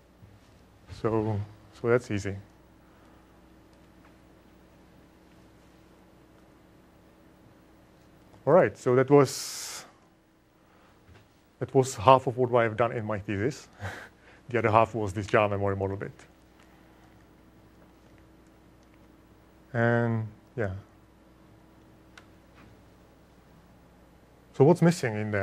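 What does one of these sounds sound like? A man speaks through a microphone in short bursts with pauses.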